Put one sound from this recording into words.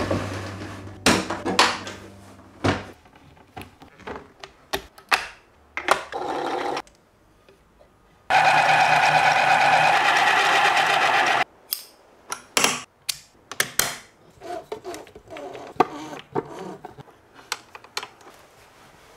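Small plastic parts click and tap.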